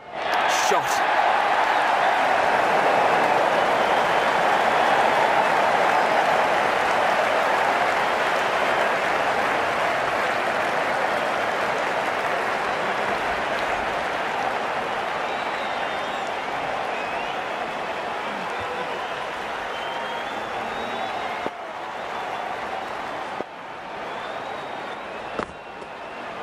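A large crowd roars and cheers steadily, slowly fading.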